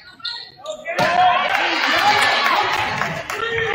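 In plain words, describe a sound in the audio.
A crowd cheers loudly in an echoing gym.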